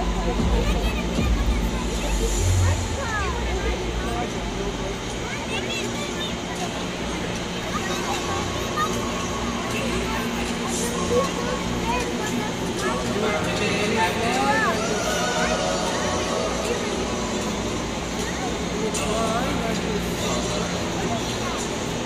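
A heavy machine's diesel engine idles and revs with a low rumble.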